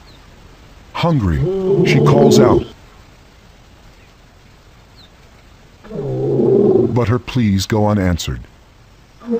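A lioness growls low and close.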